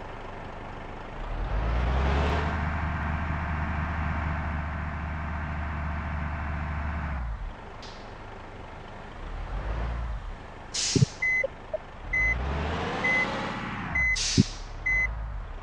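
A bus engine rumbles and revs as the bus drives.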